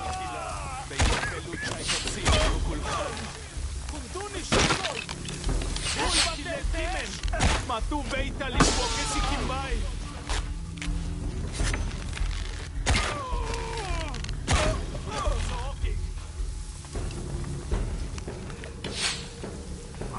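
Gunshots crack sharply several times.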